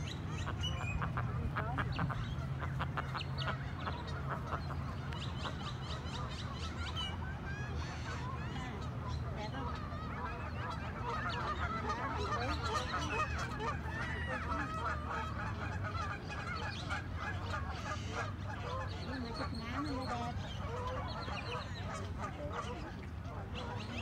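Water ripples and laps softly as ducks paddle along.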